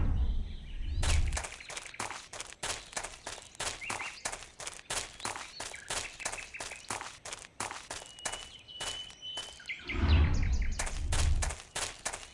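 Footsteps crunch quickly through dry grass.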